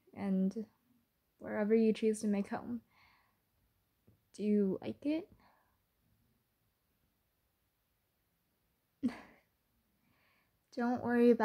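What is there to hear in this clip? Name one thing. A young woman speaks softly and playfully into a close microphone, with pauses between phrases.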